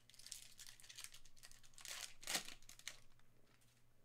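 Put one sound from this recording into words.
Foil card wrappers crinkle and tear.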